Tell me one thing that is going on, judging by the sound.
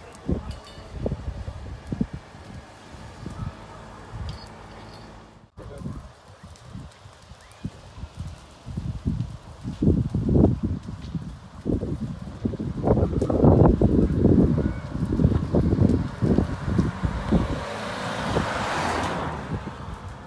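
Flames crackle and pop in burning brush.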